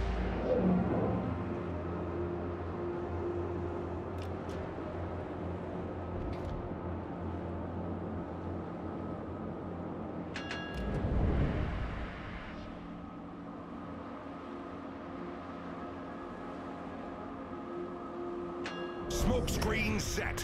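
A warship's engines rumble steadily under a low hum.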